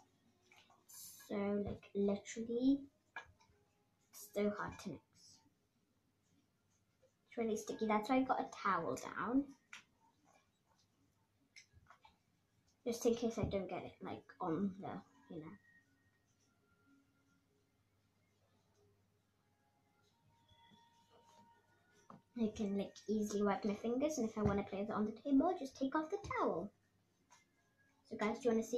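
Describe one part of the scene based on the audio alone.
A young girl talks calmly, close by.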